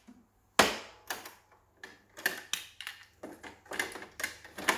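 A plastic cassette clatters and clicks as a hand pulls it from a player.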